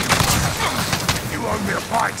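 A gun fires in quick, sharp bursts.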